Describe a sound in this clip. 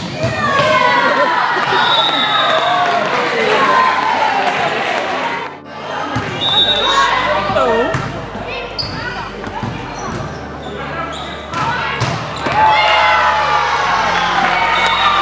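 Young women shout and cheer loudly in an echoing hall.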